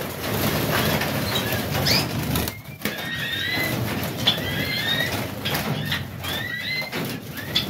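Bird wings flutter as finches fly about.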